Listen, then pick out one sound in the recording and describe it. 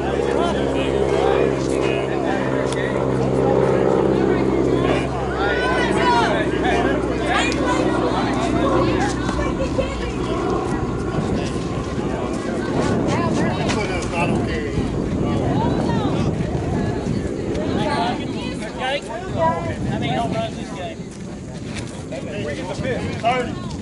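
Several men talk casually nearby outdoors.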